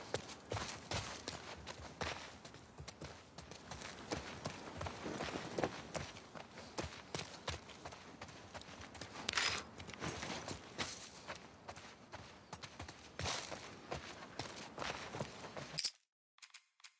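Footsteps crunch on wet ground and grass.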